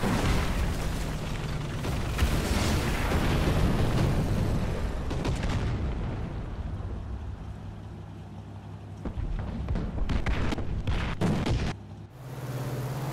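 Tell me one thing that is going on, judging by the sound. A tank engine rumbles and idles loudly.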